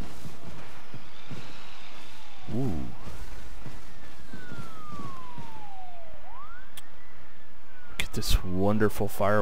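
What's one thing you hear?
Fireworks whistle upward and burst with sharp pops.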